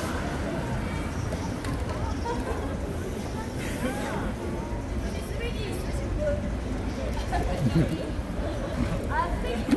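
A young woman talks casually into a microphone, heard through a loudspeaker.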